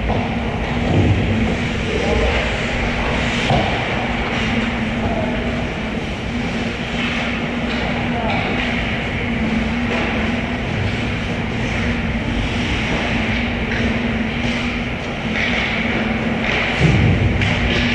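Hockey sticks clack against the ice and puck.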